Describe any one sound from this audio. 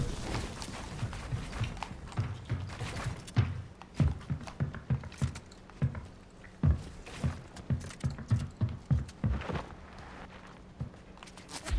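Building pieces snap into place with quick thuds in a video game.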